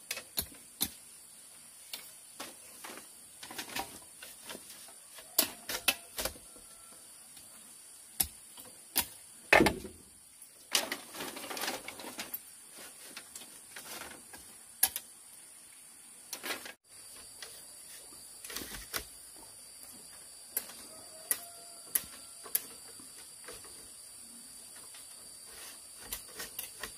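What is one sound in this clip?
Bamboo poles knock and clatter against each other.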